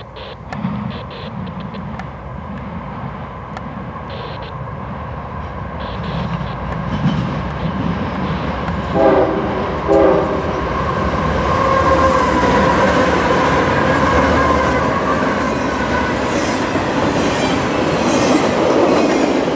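A freight train approaches and rumbles loudly past close by.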